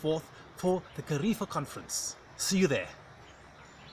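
A middle-aged man speaks with animation close to the microphone, outdoors.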